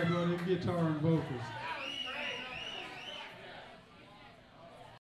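Electric guitars play.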